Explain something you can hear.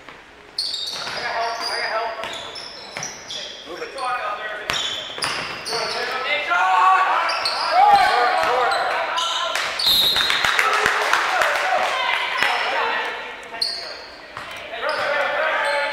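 Young players and spectators shout and call out in a large echoing gym.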